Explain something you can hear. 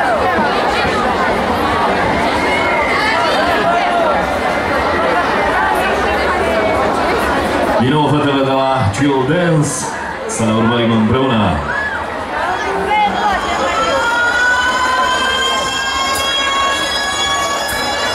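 Music plays loudly through loudspeakers.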